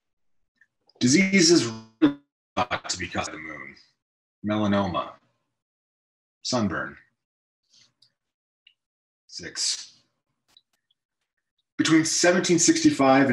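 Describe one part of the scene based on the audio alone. A man reads aloud calmly and slowly, close to a microphone, with pauses between lines.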